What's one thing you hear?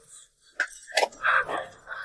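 A shovel scrapes into soil.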